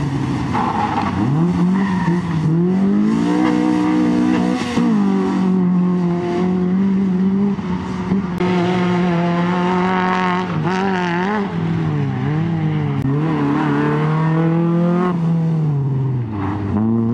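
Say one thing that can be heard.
A rally hatchback's engine revs hard through the gears.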